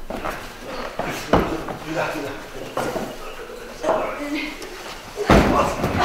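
A heavy cloth bundle rustles and scrapes on wood.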